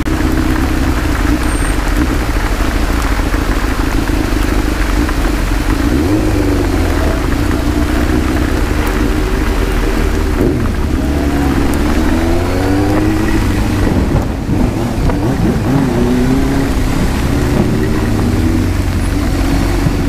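A motorcycle engine hums and revs up and down close by.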